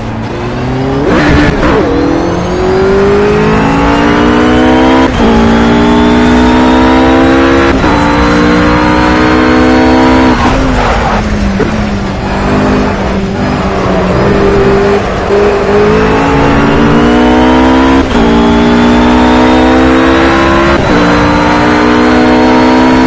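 A GT3 racing car engine screams at full throttle, shifting up through the gears.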